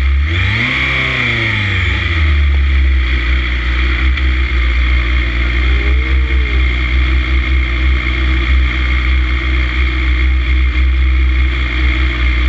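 Wind rushes loudly past a speeding motorcycle.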